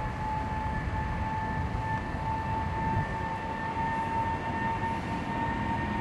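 A jet airliner's engines whine and roar steadily from a distance.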